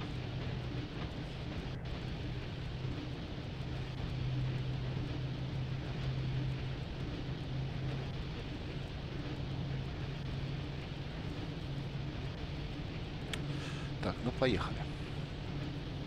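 An electric locomotive's motors hum steadily.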